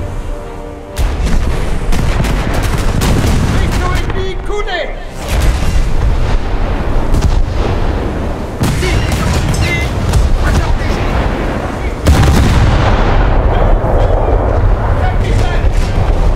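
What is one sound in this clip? A shell explodes nearby with a heavy crash of water.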